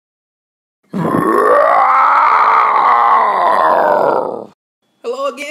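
A dinosaur roars loudly and long.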